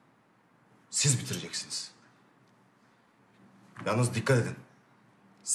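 A second man asks a question in a low voice.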